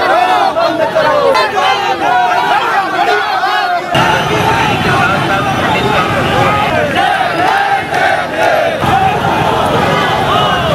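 A crowd of marchers chants slogans loudly outdoors.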